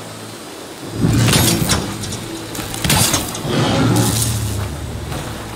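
A launcher fires with sharp twanging snaps.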